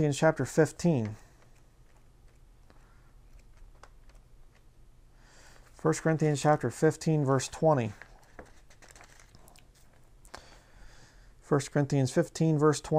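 A man speaks calmly and close by, reading out in short phrases.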